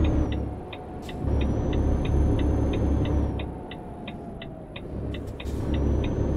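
A diesel truck engine hums while driving.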